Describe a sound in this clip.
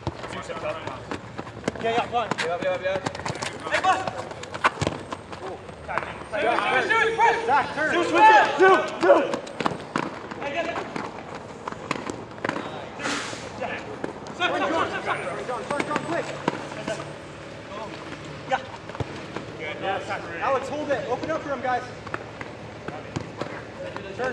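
Sneakers squeak and patter on a hard court.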